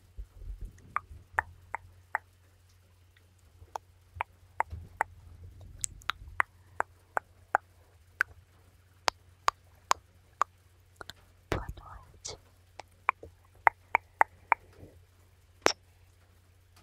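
Fingers tap and brush against a microphone close up, with sharp clicks.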